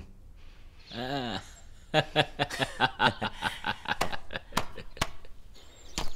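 A middle-aged man laughs heartily, close by.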